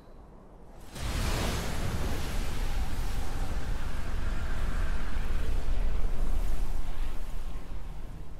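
A deep rushing wind roars steadily.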